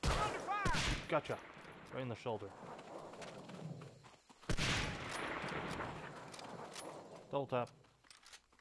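A rifle bolt clacks metallically.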